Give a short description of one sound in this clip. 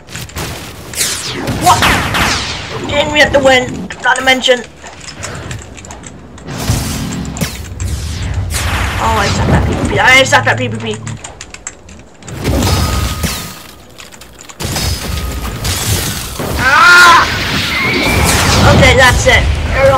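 Energy blasts and sword slashes whoosh and boom in bursts.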